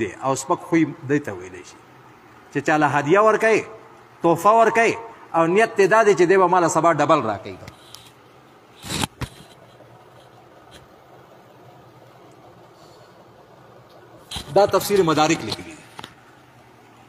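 An elderly man chants melodiously into a microphone, in a room with a slight echo.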